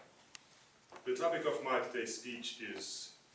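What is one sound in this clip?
A man speaks calmly in a room.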